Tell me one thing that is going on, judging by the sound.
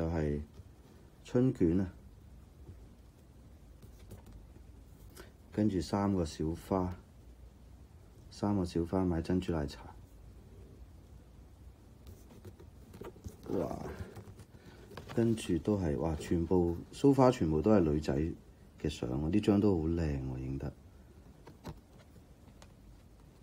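Stiff cards slide and rustle as they are handled.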